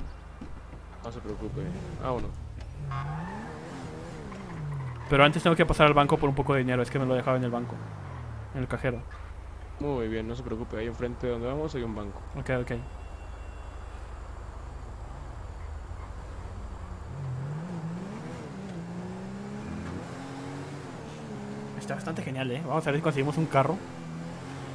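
A car engine revs up and down as a car drives.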